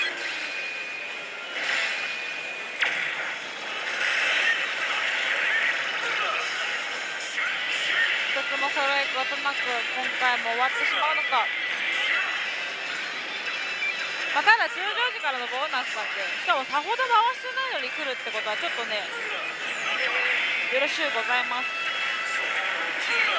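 A slot machine plays loud electronic music and jingles.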